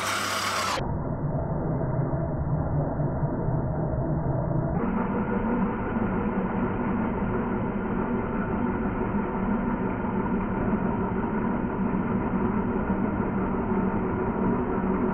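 A chisel scrapes and cuts into spinning wood.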